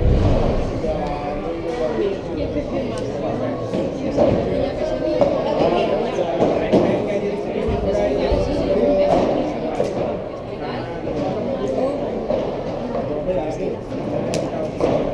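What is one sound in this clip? Paddles strike a ball with sharp knocks in a large echoing hall.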